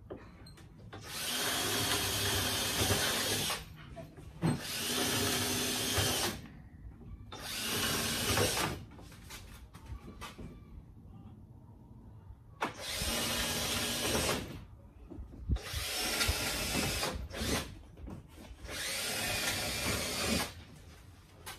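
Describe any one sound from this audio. A power tool whirs loudly in repeated bursts.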